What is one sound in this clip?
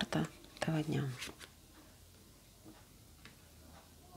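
Playing cards shuffle softly in hands.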